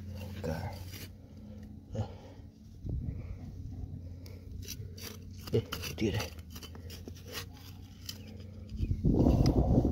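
Fingers scrape and crumble dry soil.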